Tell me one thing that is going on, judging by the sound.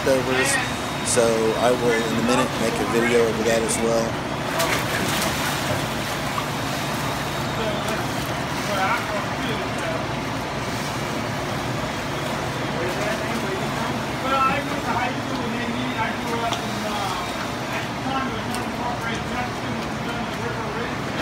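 Water laps and sloshes gently throughout.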